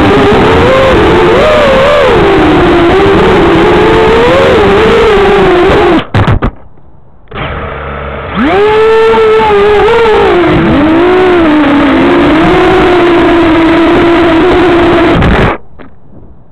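A small drone's motors whine loudly and shrilly, rising and falling in pitch.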